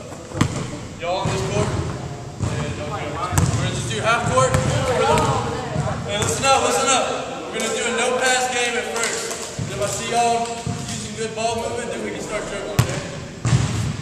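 Several young men talk and call out across the echoing hall.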